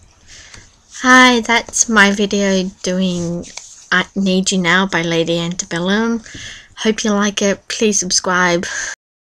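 A young woman speaks close to the microphone with animation.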